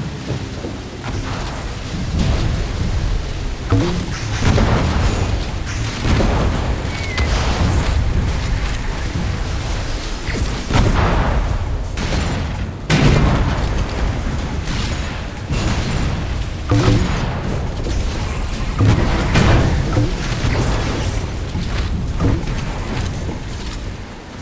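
A small motorboat engine roars steadily while speeding over water.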